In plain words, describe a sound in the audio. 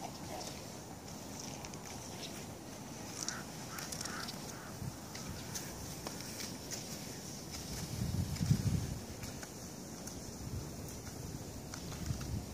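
Skis swish and scrape over snow close by.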